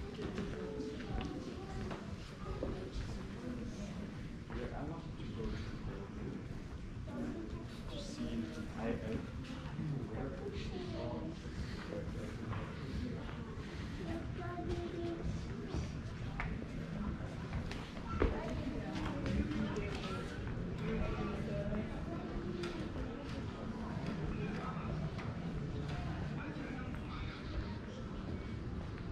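People chatter quietly in a large echoing hall.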